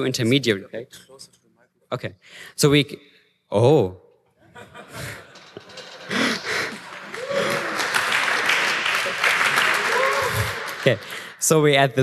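A young man speaks with animation into a microphone in a large hall.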